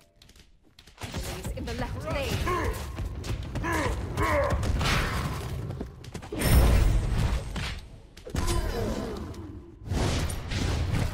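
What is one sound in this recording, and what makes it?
Game spells and blows crash and whoosh in a fight.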